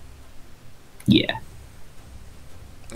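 A whooshing game sound effect plays as a card pops up.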